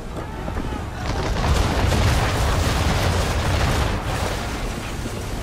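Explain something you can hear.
Cannons fire with heavy booming blasts.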